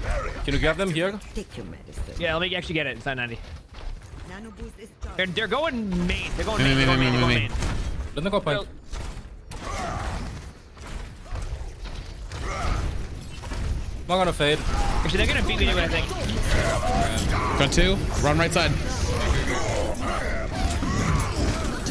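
Game gunfire and blasts crackle and boom.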